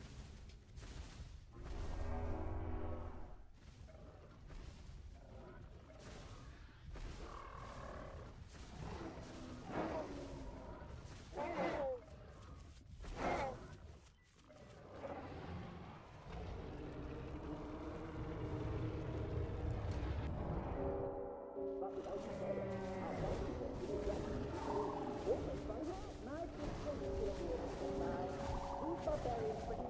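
Large creatures growl and roar loudly.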